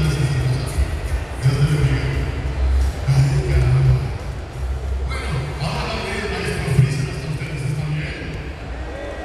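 A young man sings into a microphone, heard through loudspeakers in a large echoing hall.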